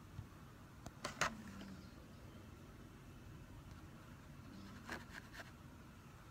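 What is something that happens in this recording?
A small brush taps and clicks against a plastic case.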